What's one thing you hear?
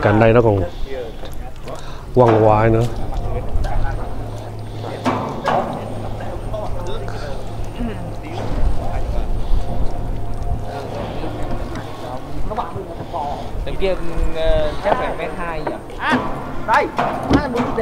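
Several men talk nearby with animation.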